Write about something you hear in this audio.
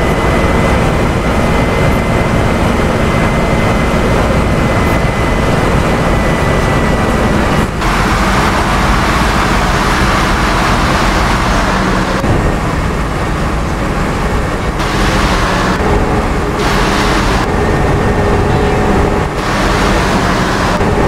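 Rain patters on a bus windscreen.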